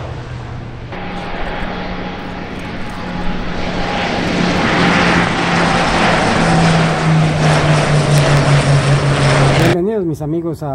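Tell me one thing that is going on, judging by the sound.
Two propeller planes roar overhead with a steady droning hum.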